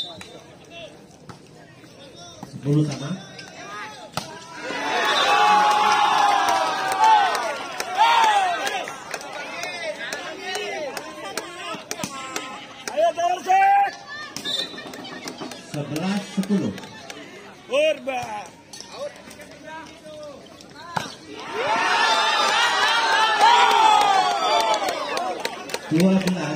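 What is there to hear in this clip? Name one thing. Players shout to each other on the court.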